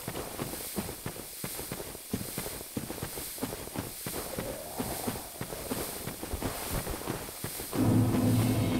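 Footsteps crunch on dry straw.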